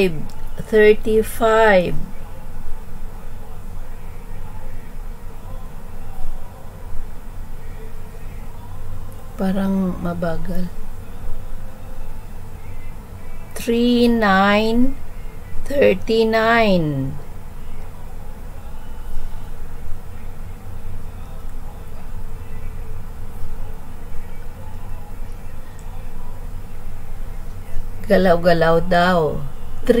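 A middle-aged woman speaks in short bursts over an online call.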